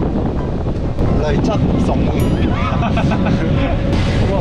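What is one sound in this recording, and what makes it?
Young men laugh and talk loudly close by.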